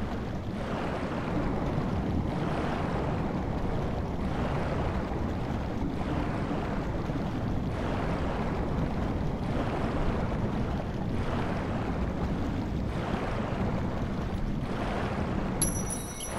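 A muffled underwater rumble goes on steadily.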